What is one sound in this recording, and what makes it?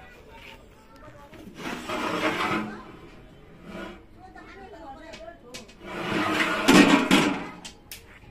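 Metal pots clink against each other.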